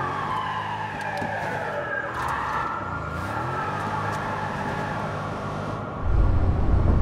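A car engine hums at idle.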